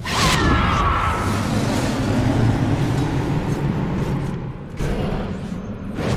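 A fiery beam roars briefly.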